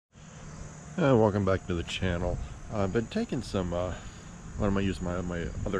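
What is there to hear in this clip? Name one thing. A middle-aged man speaks calmly and close up, outdoors.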